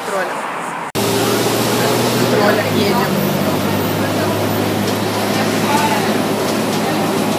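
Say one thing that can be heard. A young woman talks excitedly close to the microphone.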